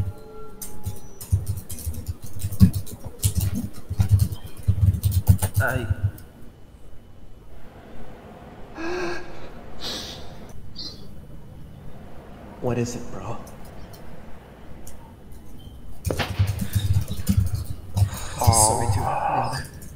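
A young man talks quietly close to a microphone.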